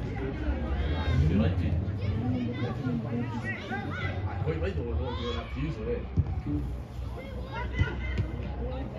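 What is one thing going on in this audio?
Young men shout and call out to each other across an open pitch outdoors.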